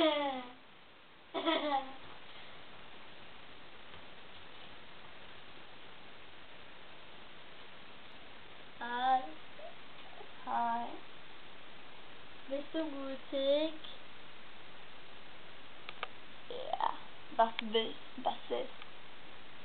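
A teenage girl speaks close by in short, lively bursts.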